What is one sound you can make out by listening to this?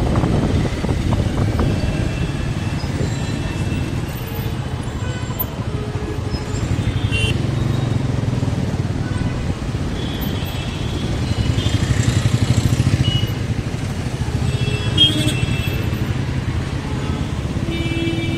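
A motorbike engine idles and rumbles steadily close by.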